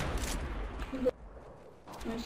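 A rifle fires a single sharp, loud shot.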